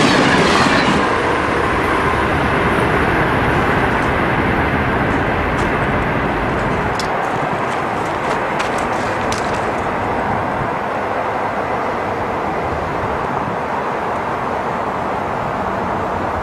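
The roar of a passing train fades into the distance.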